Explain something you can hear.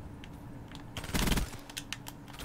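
Gunfire from a video game crackles in short bursts.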